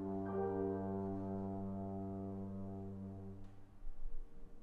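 A trombone holds a long low note that rings out in an echoing hall.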